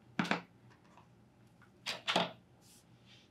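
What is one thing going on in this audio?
Scissors snip.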